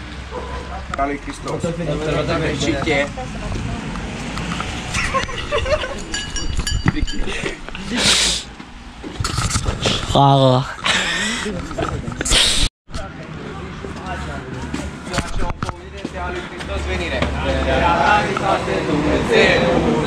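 Several young men talk and laugh together outdoors.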